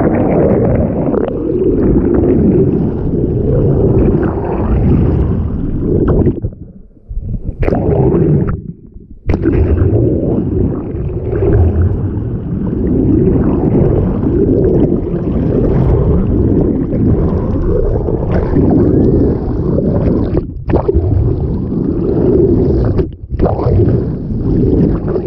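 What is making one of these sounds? Water rushes and gurgles in a muffled underwater rumble.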